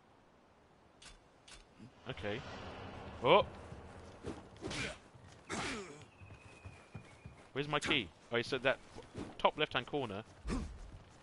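Swords swish and clash in quick strikes.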